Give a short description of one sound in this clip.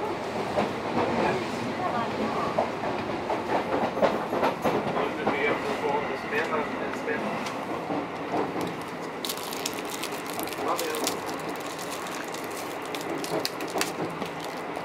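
A train carriage rumbles while running.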